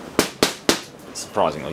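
A thin stick taps sharply against a hard panel.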